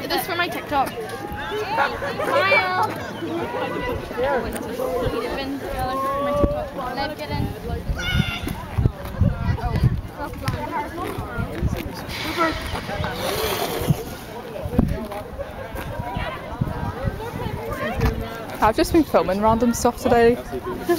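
Teenage girls chatter and laugh nearby.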